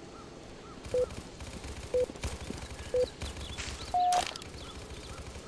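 A game's countdown beeps once a second, then a higher tone sounds.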